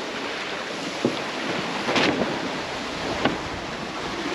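A sail flaps in the wind.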